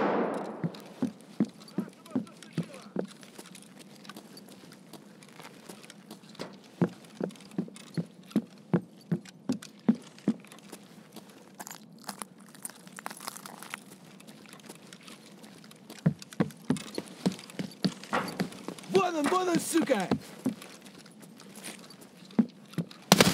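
Footsteps thud at a steady walking pace on a hard floor.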